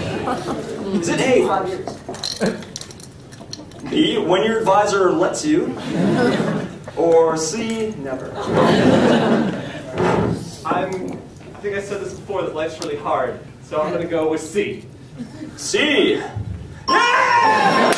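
A man speaks into a microphone, reading out.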